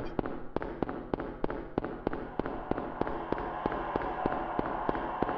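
Running footsteps echo quickly on a hard floor in a tunnel.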